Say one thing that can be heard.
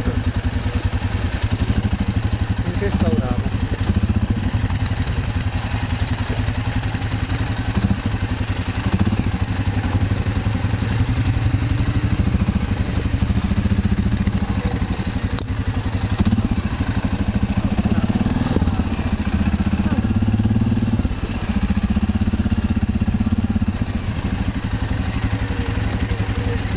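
A quad bike engine drones up close as it climbs a rocky dirt track.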